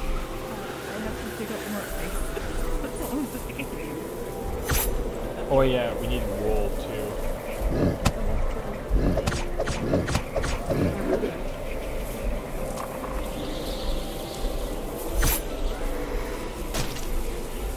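A young man talks into a headset microphone, close up.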